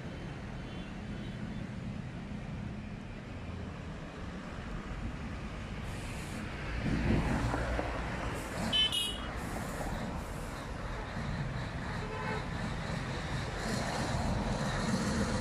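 Traffic rumbles past on a street outdoors.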